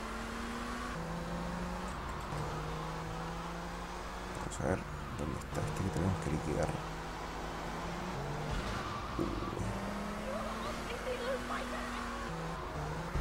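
A sports car engine roars steadily, shifting pitch as it speeds along.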